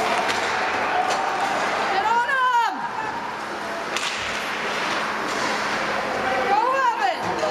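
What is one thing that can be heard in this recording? Skates scrape across ice in a large echoing arena.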